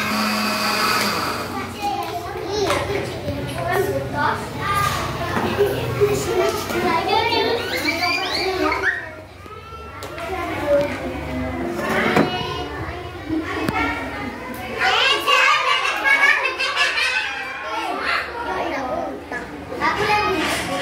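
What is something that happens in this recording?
A young boy talks with animation nearby.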